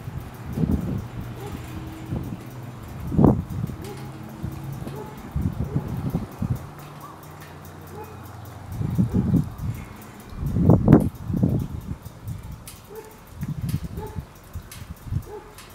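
Wind gusts blow over the microphone outdoors.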